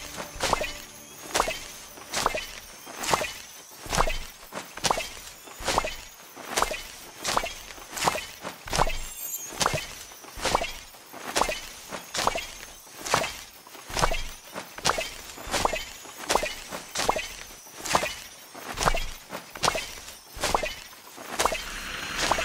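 Light footsteps patter steadily on soft ground.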